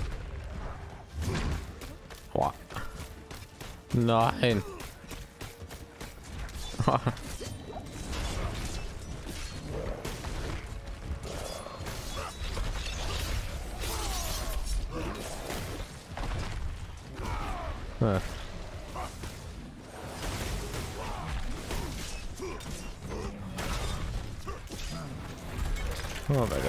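Heavy blows and magic blasts crash and thud again and again in a fight.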